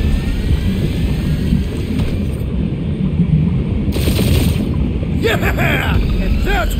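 A spaceship engine roars with a deep, steady rumble.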